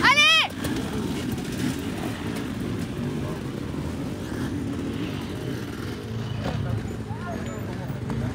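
A dirt bike engine revs nearby outdoors.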